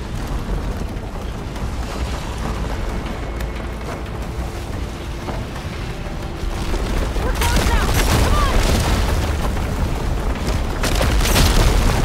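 Flames roar and crackle all around.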